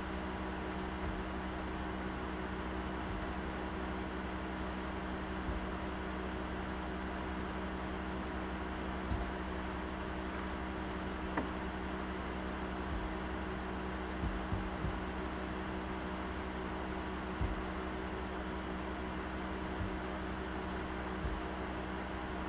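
Footsteps thud on a hard floor at a slow pace.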